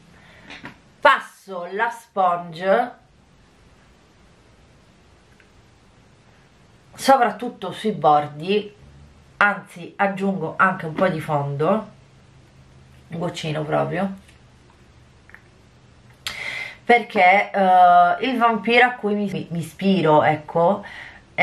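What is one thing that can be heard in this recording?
A woman talks calmly and closely into a microphone, in bursts with pauses.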